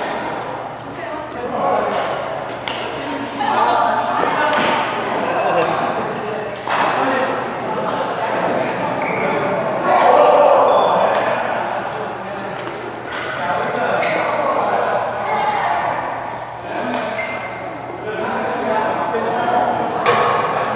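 Rackets strike a shuttlecock in a quick rally, ringing in a large echoing hall.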